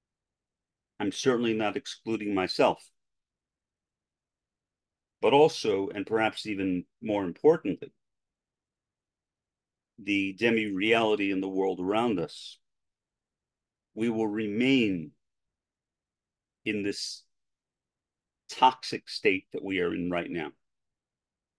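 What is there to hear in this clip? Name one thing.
An older man speaks slowly and calmly into a close microphone, with long pauses.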